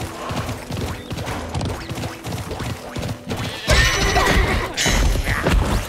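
A horse gallops with quick, rhythmic hoofbeats.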